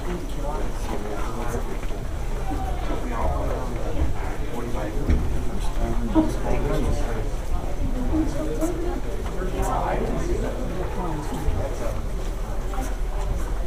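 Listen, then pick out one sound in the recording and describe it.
Many footsteps shuffle on a hard floor.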